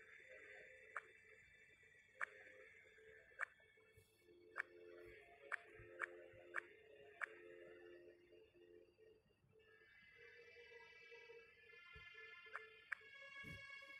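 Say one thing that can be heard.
Short game clicks sound as tiles change.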